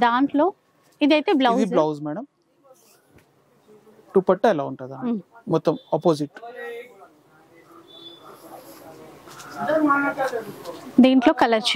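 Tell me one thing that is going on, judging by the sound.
Fabric rustles as cloth is unfolded and spread out.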